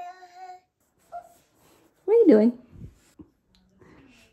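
A small child squeals and babbles close by.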